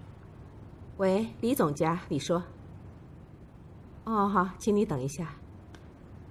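A woman speaks calmly into a phone nearby.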